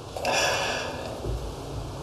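A can of beer hisses open.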